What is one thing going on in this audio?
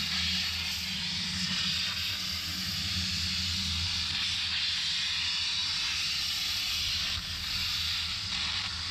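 A plasma torch hisses and roars steadily as it cuts through metal.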